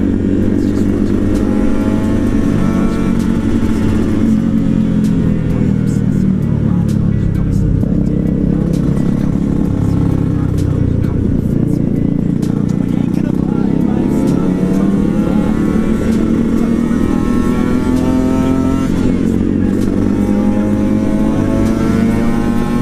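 A motorcycle engine hums steadily up close, its pitch rising and falling as it speeds up and slows.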